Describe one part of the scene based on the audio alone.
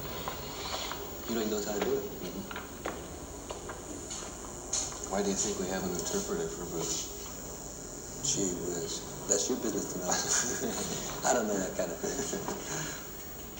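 A man talks calmly, heard through a television speaker.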